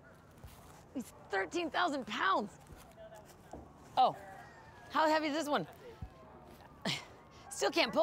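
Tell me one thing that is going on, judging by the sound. A young woman calls out.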